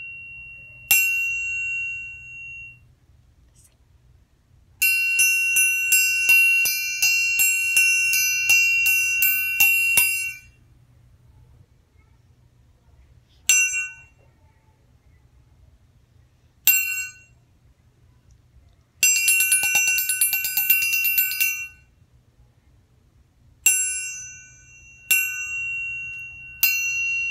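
A triangle is struck and rings brightly, sometimes in quick repeated strokes and sometimes as a fast trill.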